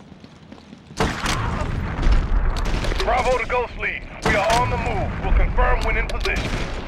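A grenade explodes with a deep boom.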